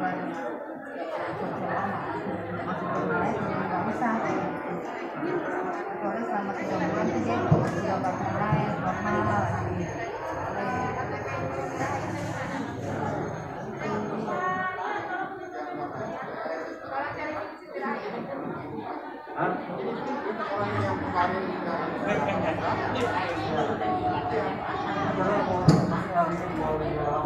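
A crowd of men and women chatter all around.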